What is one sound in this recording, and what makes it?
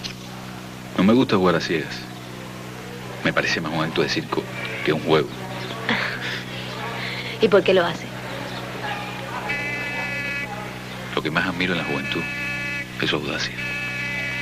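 A man talks in a friendly way to a woman.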